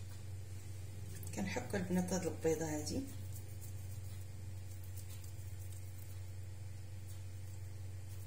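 An egg scrapes softly against a metal grater.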